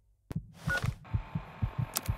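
An electronic device switches on with a short hum.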